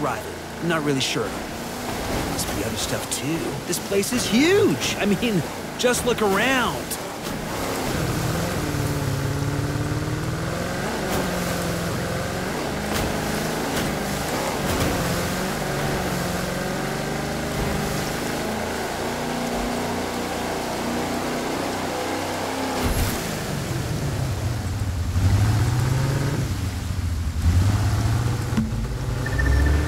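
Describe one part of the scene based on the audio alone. Water splashes and sprays against a speeding boat's hull.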